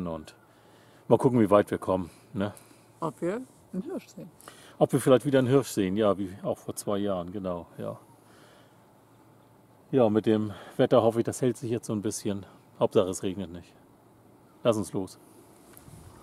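A middle-aged man talks close to the microphone.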